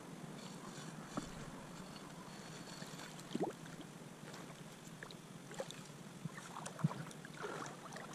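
Water sloshes as a net trap is pulled from a stream.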